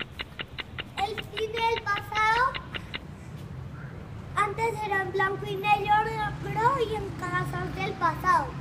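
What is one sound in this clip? A young boy sings loudly close by.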